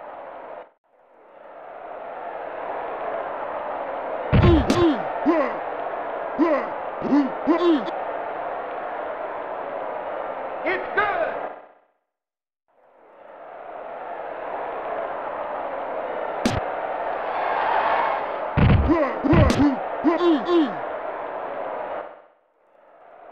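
A video game crowd roars steadily.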